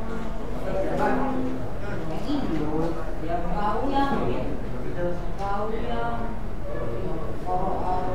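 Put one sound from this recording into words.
A young man talks quietly nearby.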